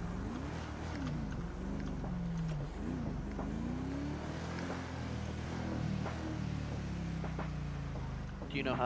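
A car engine revs up and down as a car drives.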